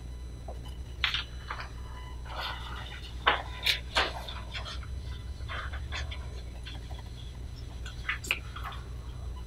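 Sheets of paper rustle and crinkle as they are handled.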